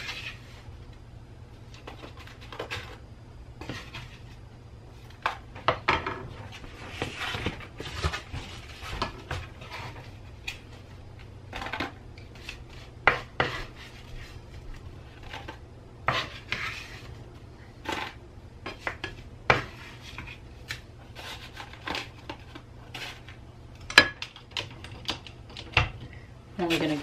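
Metal tongs clink and scrape against a frying pan.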